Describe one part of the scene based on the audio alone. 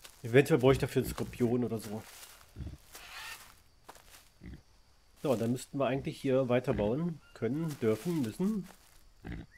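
Footsteps crunch on dry leaves and soil.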